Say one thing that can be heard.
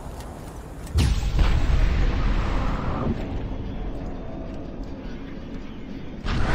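A sudden rush of crackling noise bursts in and slowly fades.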